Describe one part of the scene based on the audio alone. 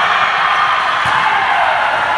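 A volleyball thuds as a player hits it.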